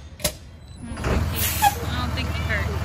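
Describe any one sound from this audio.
A diesel truck engine cranks and starts.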